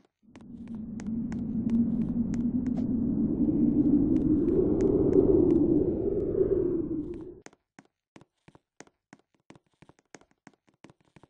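Quick footsteps patter steadily.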